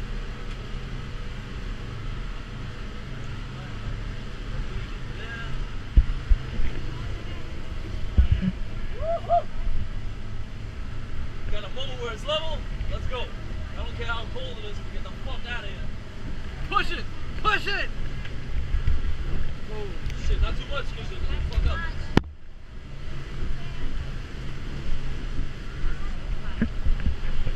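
Wind buffets the microphone as a motorboat moves over water.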